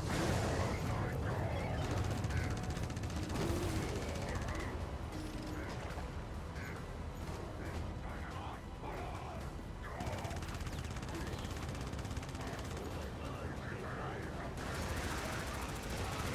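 Flamethrowers roar with a steady rushing blast.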